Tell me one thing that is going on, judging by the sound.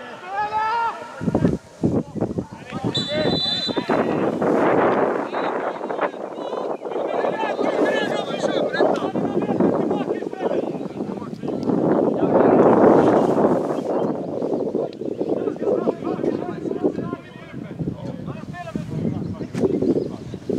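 Players shout to each other outdoors across an open field.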